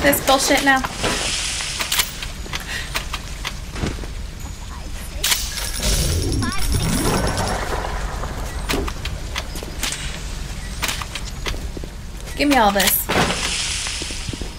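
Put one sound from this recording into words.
A young woman talks into a microphone close by.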